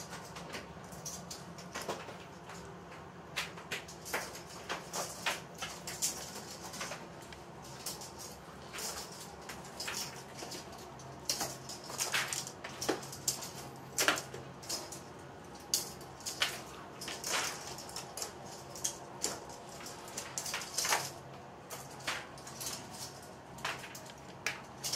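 Small metal clips click and clatter as they are handled.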